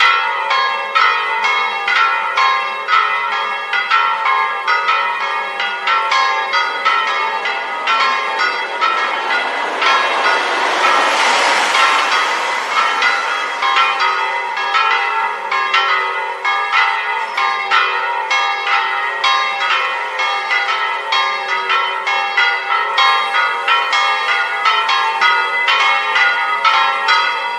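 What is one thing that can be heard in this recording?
Church bells ring loudly in rapid, overlapping peals.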